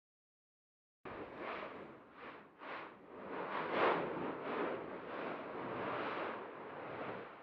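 A volcano erupts with deep roaring bursts of lava.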